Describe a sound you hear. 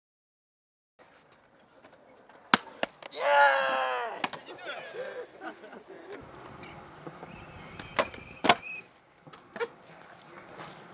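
A skateboard's wheels roll and grind on concrete.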